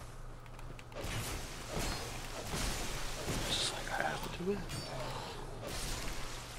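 A sword swings and strikes with a metallic clash.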